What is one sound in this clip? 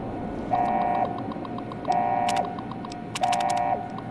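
Keys click on a computer terminal.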